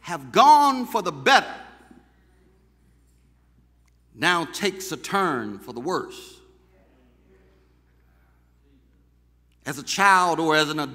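A man preaches with animation into a microphone, in bursts with pauses.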